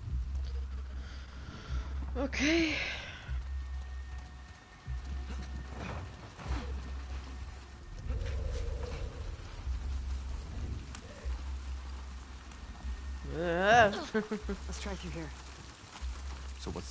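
Footsteps patter on wet pavement.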